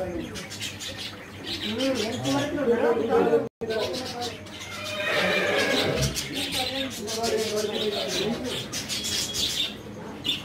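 Several men and women chatter nearby.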